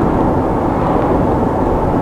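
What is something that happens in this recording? A truck passes by going the other way.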